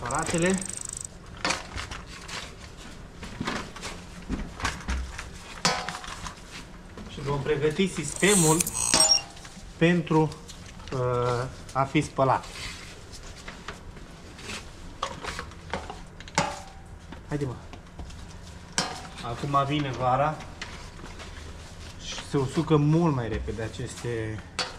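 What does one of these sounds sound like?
Rubber hoses rustle and thump as they are handled.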